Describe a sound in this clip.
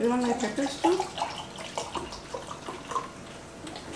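Juice pours from a plastic bottle into a glass.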